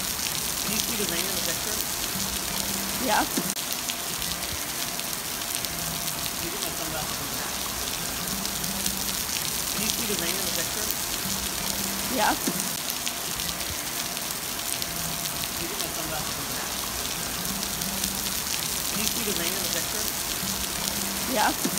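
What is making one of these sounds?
Rain patters steadily onto water outdoors.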